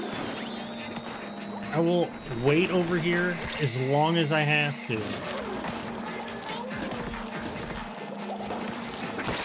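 Cartoonish splashing and squirting sounds play from a video game.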